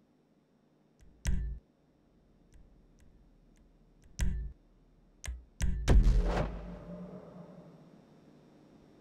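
Short electronic menu swooshes sound now and then, ending in a louder whoosh that fades.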